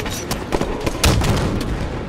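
Gunfire blasts in quick bursts.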